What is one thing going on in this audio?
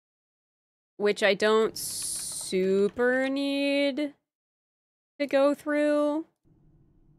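A young woman speaks animatedly into a microphone, close by.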